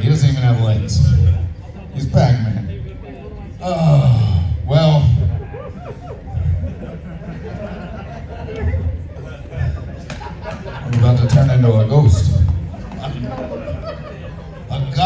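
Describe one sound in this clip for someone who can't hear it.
A man speaks with animation through a microphone and loudspeakers in a large echoing room.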